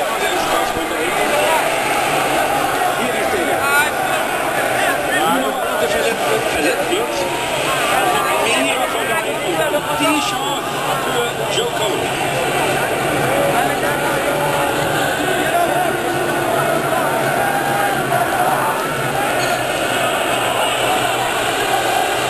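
A huge crowd of men sings and chants loudly outdoors.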